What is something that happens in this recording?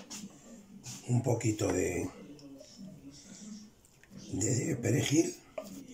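A wooden spoon scrapes food from a metal pan onto a plate.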